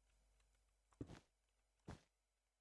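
Blocks are placed with short soft thuds.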